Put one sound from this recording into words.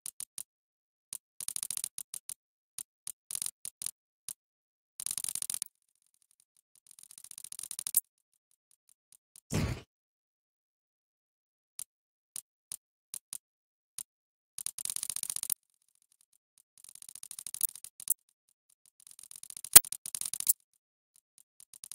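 Short electronic clicks tick in quick runs as menu letters scroll.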